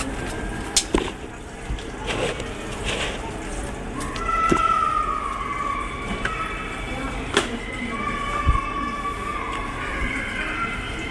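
A puppy's paws patter and click on a plastic floor.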